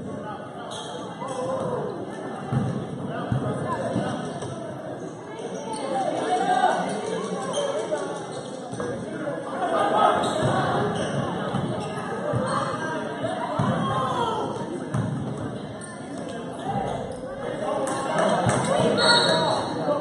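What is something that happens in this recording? A crowd of spectators chatters and calls out in a large echoing gym.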